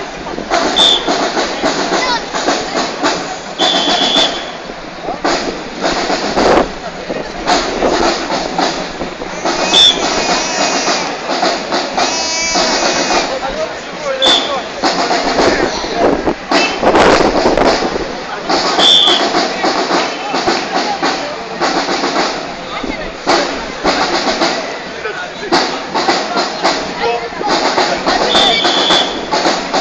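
A crowd of people chatters and cheers nearby.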